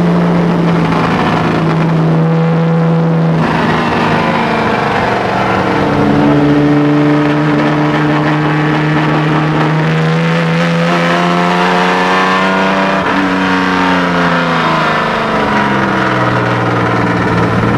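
A car engine roars loudly, its revs rising and falling through gear changes.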